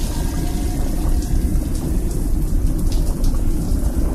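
Water sprays from a shower head.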